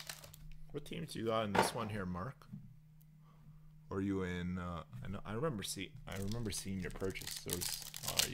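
A foil wrapper crinkles in someone's hands.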